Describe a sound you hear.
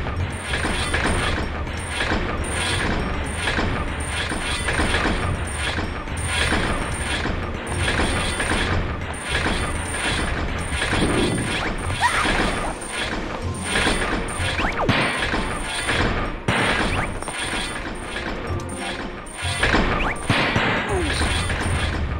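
A heavy wooden crate scrapes across a stone floor as it is pushed.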